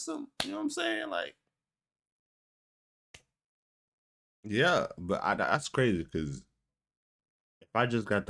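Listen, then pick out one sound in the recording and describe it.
A young man talks with animation close to a microphone, with short pauses.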